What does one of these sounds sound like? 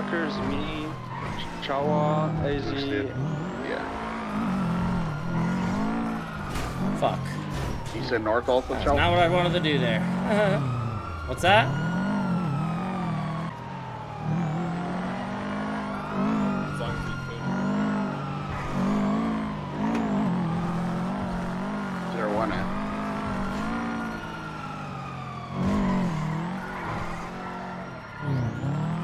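A car engine revs hard and whines as it speeds up and slows down.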